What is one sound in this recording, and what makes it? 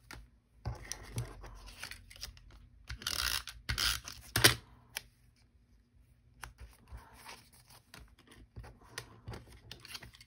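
Cardstock slides and rustles on a cutting mat under a person's hands.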